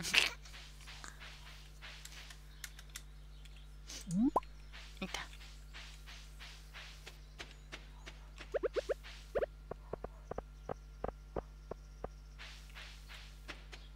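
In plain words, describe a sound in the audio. Quick light footsteps patter along a path.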